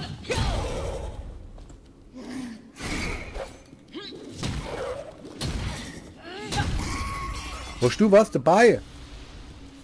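Metal weapons clash and strike in a fight.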